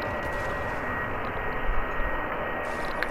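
An explosion booms and debris clatters.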